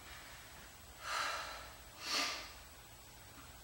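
A young woman breathes out sharply with effort.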